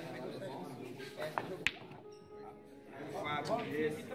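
A cue sharply strikes a pool ball.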